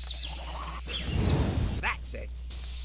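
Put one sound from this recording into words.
A dragon blasts a roaring burst of fire.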